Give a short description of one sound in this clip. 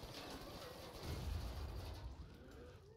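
A loud explosion booms with a deep rumble.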